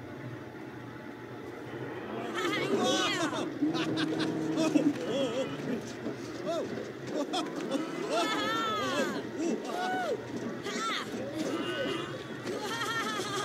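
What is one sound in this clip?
Mechanical riding bulls whir and thump as they buck.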